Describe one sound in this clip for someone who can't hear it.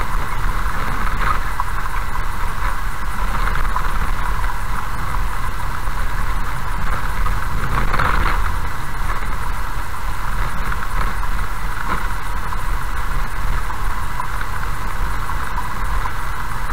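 A car drives steadily along a gravel road with a low, constant rumble.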